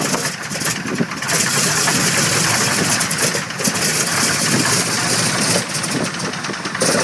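Wind buffets and rushes from the propeller wash.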